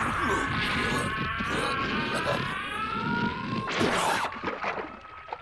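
Heavy punches thud and smack.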